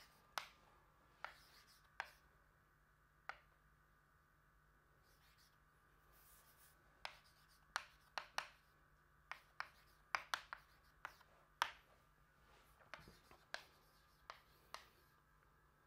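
Chalk taps and scrapes sharply on a blackboard.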